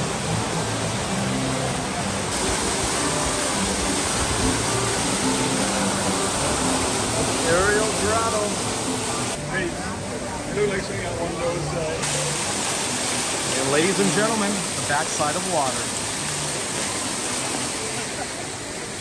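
A waterfall splashes steadily into a pool.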